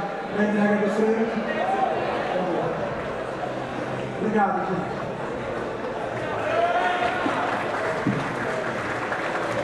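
A young man speaks with animation through a microphone over loudspeakers in a large echoing hall.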